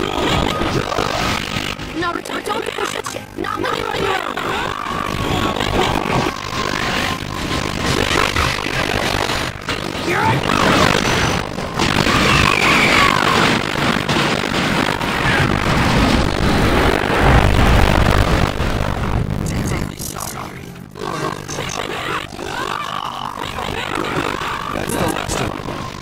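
Blows and impacts land in a fast, noisy fight.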